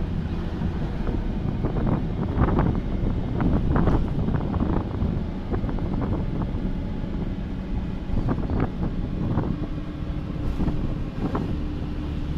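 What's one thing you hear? Loose fittings inside a bus rattle and knock.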